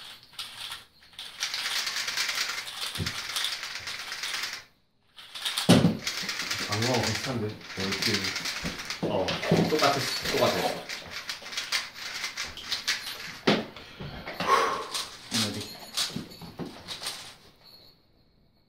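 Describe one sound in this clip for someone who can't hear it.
Plastic puzzle cubes click and rattle as they are twisted quickly.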